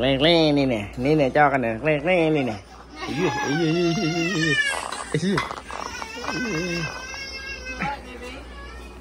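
A toddler babbles and squeals loudly up close.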